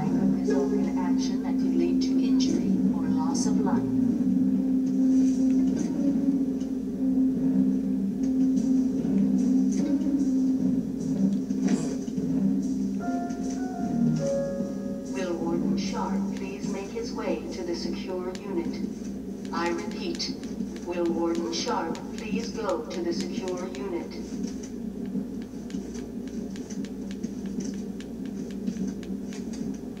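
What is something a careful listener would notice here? Game music and sound effects play from a television.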